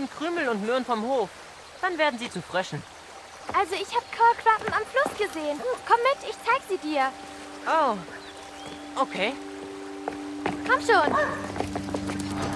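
A young boy talks nearby in an eager voice.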